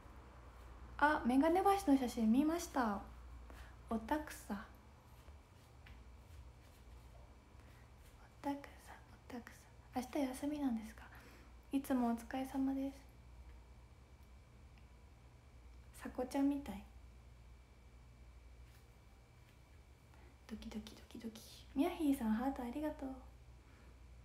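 A young woman talks casually and close by, in short bursts with pauses.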